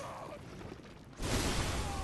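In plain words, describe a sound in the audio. A blade slashes into flesh with a wet thud.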